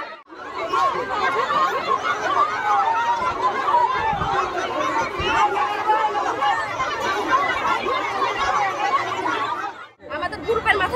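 A crowd of women shout and clamour loudly outdoors.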